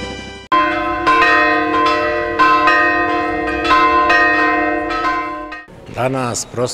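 Church bells ring loudly.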